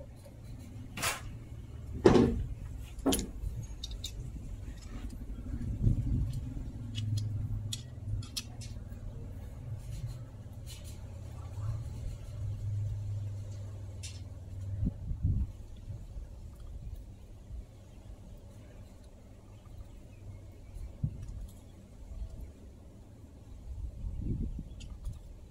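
Metal tools click and clink against an engine casing.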